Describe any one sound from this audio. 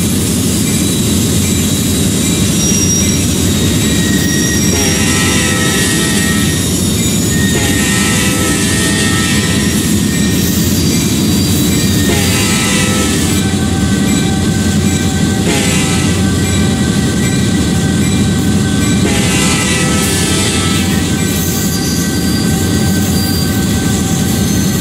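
Train wheels clatter over the rails.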